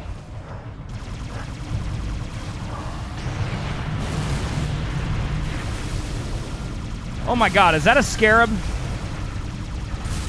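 Deep game explosions and rumbling roll on steadily.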